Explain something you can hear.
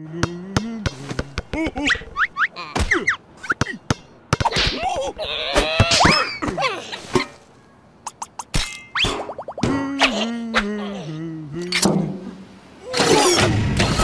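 A small cartoon creature babbles and squeals in a high, squeaky voice.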